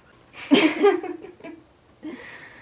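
A girl laughs close by.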